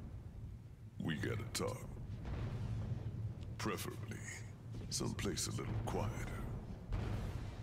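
A man speaks in a deep, calm voice.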